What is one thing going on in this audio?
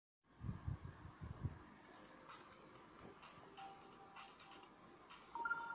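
Fingers tap on a touchscreen.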